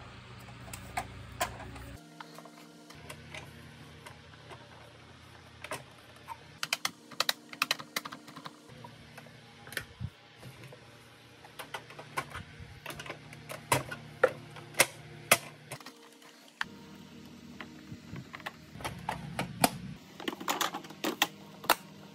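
Plastic parts click and knock as a vacuum cleaner casing is taken apart and put back together.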